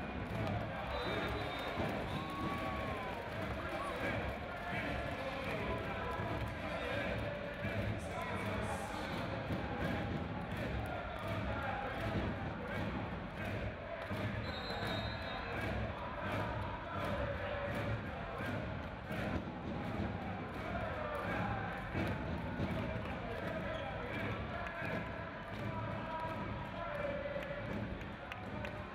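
A volleyball is struck with sharp slaps during a rally.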